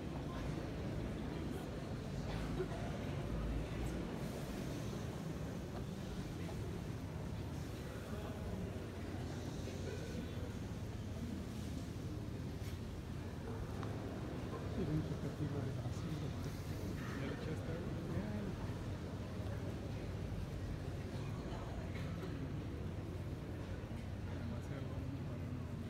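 A crowd murmurs quietly in the distance.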